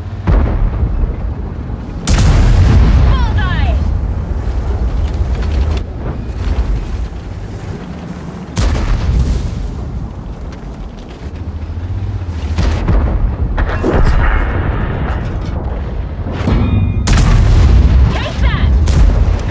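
A heavy tank's engine rumbles as it drives over rough ground.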